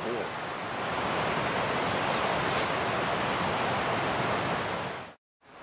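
Glowing embers hiss and crackle in a fire.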